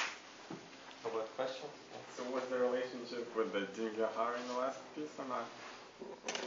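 A man speaks calmly in a large, echoing room.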